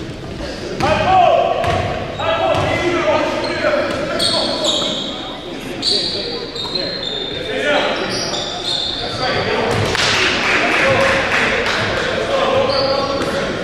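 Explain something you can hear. Men shout to each other, echoing in a large hall.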